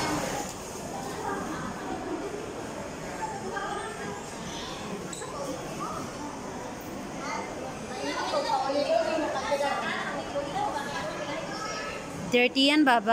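Many people murmur in the background of a large echoing hall.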